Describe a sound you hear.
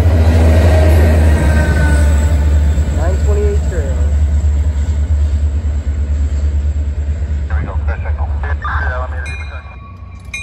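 A diesel locomotive engine rumbles loudly close by.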